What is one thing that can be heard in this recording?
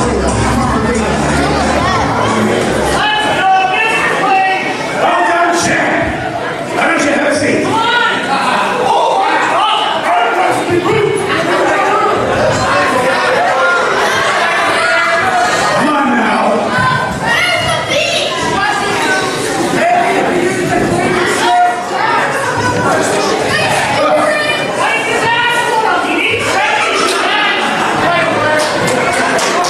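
A woman speaks with animation into a microphone over a loudspeaker.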